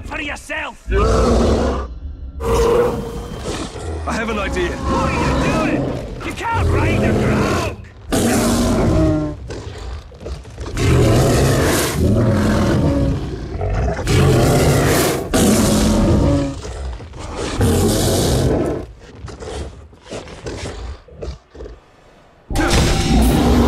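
A large beast growls and roars.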